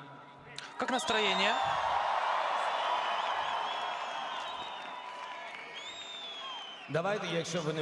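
Whistles shrill from a crowd.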